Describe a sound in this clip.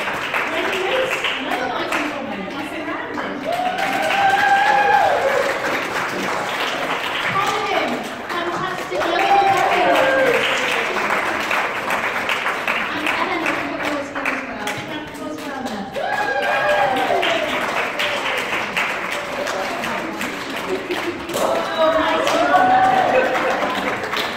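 A group of men and women sing together in a large echoing hall.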